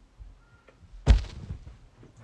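A thump sounds nearby.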